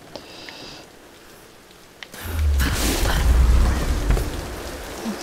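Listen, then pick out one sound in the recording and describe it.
A person scrambles and scrapes up a wooden wall.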